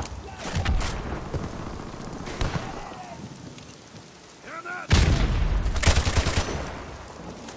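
Gunshots crack in loud bursts.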